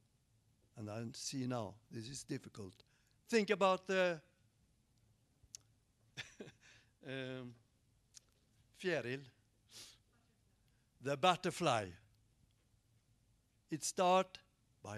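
An elderly man speaks with animation into a microphone, in bursts with pauses.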